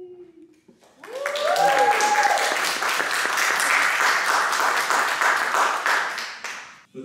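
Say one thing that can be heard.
A woman claps her hands.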